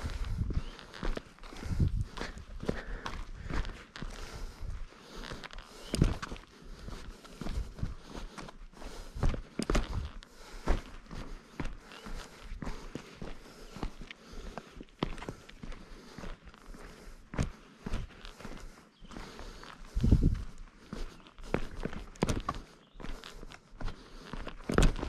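Footsteps crunch and scuff on a rocky trail.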